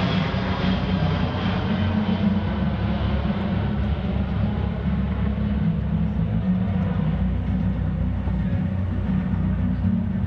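A large jet transport plane roars overhead with a deep, steady engine rumble.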